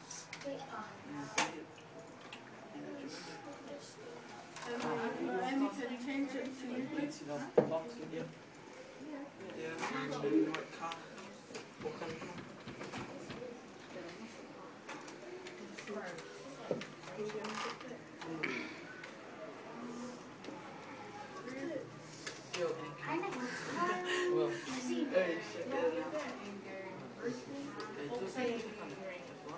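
Teenage boys talk and chatter close by.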